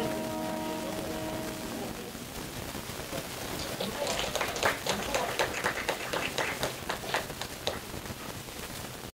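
An electric guitar strums softly.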